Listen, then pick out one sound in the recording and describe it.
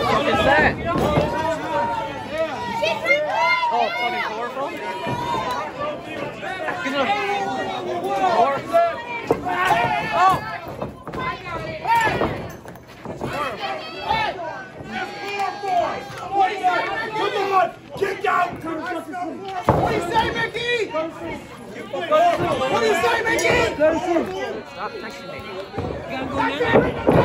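A crowd of men and women shouts and cheers loudly close by.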